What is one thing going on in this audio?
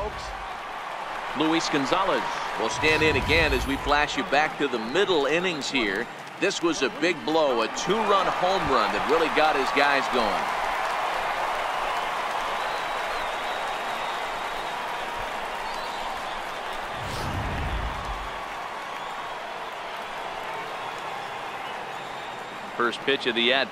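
A large stadium crowd murmurs and cheers.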